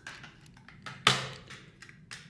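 A plastic case clicks open.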